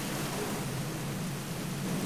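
Rain pours down steadily.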